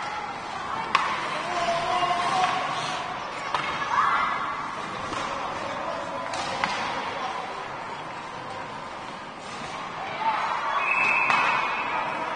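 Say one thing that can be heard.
Hockey sticks knock a puck with sharp clacks.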